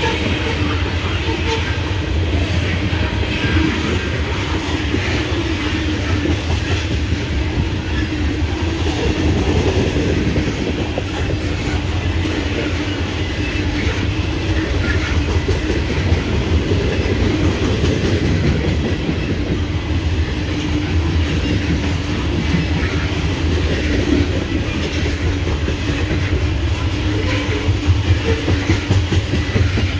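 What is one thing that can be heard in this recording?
A long freight train of loaded hopper cars rolls past close by.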